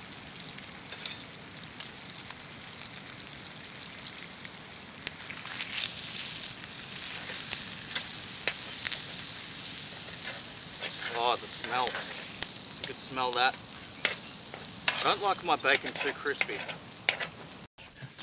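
Metal tongs click and scrape against a grill.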